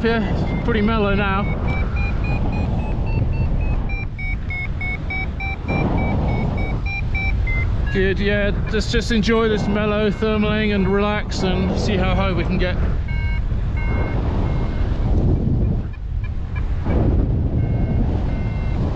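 Wind rushes loudly past the microphone.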